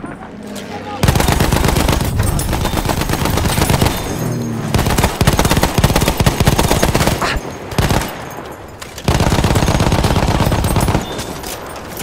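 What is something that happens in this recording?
A machine gun fires long rapid bursts up close.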